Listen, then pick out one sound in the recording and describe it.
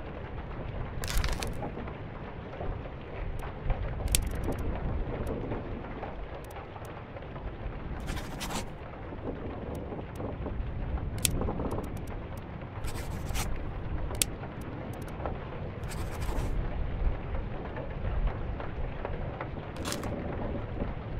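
Soft clicks sound as menu choices are made.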